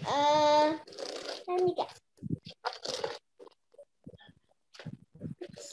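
A young girl answers over an online call.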